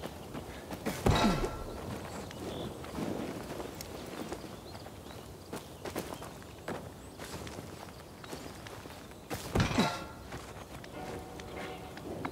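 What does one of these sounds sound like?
Hands grab metal rungs with a dull clank.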